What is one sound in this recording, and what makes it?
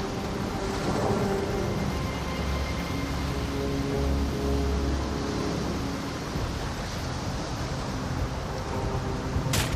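Footsteps tread over rocky ground.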